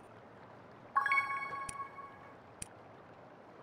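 A bright reward chime rings out.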